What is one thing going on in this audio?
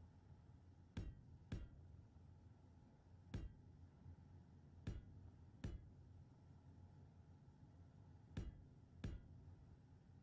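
A sharp clunk sounds each time a building block snaps into place.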